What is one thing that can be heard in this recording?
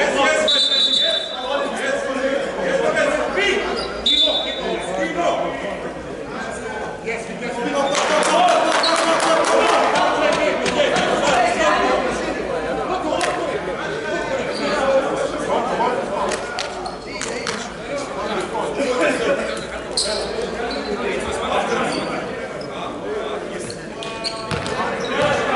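Volleyballs thud as players hit them in a large echoing hall.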